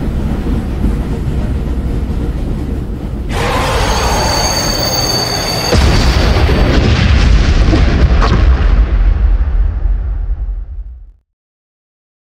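A train rumbles heavily through an echoing tunnel.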